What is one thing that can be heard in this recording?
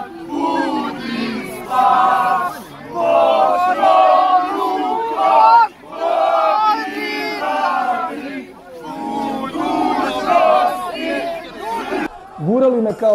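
A crowd of men chants loudly in unison outdoors.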